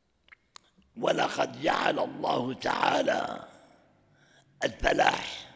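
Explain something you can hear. An elderly man speaks calmly and with feeling into a close microphone.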